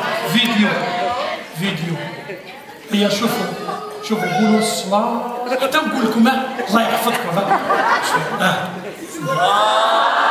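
A man talks with animation through a loudspeaker in an echoing hall.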